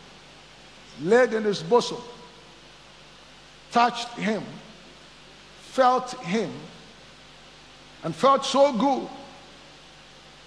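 A man speaks with emphasis in short bursts through a microphone, with pauses between phrases.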